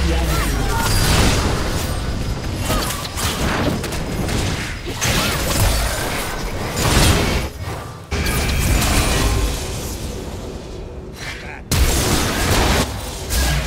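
Game spell effects burst and clash loudly during a fight.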